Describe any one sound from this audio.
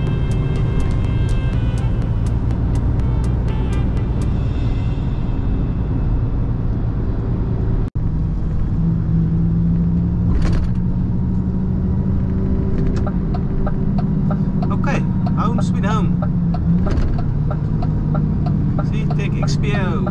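A bus engine rumbles steadily as it drives along.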